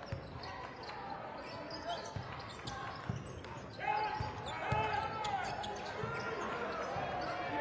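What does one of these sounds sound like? A basketball bounces on a wooden court with dull thumps.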